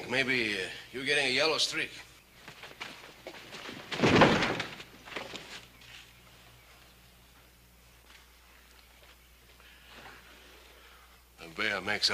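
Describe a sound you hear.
A man speaks forcefully nearby.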